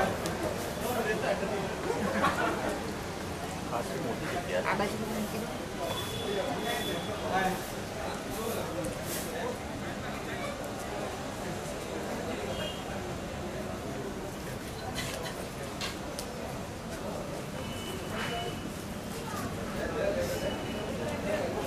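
Dishes and spoons clink on a table.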